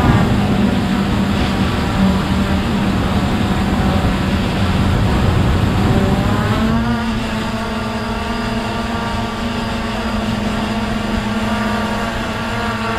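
A drone's propellers buzz steadily close by, shifting pitch partway through.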